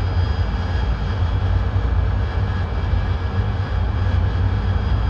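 Wind rushes steadily past a cockpit canopy.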